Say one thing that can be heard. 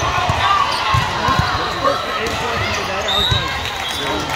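A volleyball thuds as players hit it.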